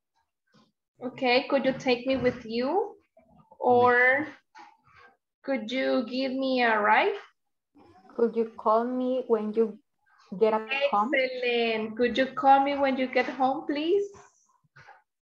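A woman speaks clearly and calmly over an online call, in short phrases with pauses.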